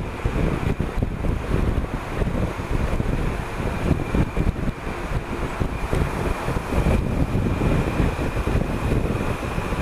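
Traffic roars and echoes in a tunnel.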